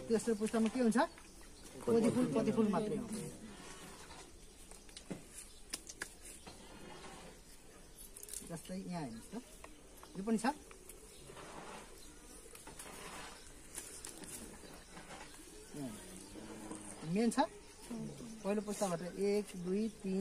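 Leaves rustle as hands handle plants.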